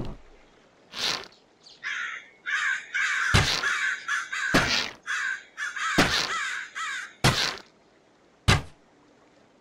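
A bow twangs as arrows are shot in quick succession.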